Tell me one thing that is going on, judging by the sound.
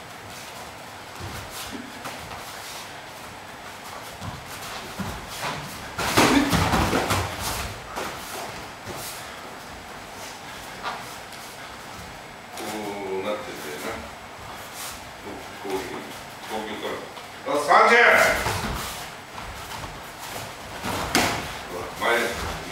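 Punches and kicks thud against bodies and pads.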